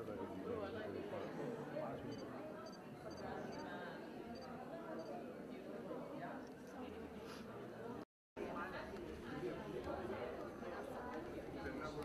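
A crowd of people chatter in the background.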